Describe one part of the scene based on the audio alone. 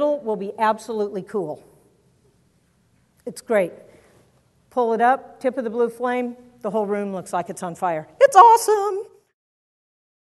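A woman speaks with animation into a microphone in a large echoing hall.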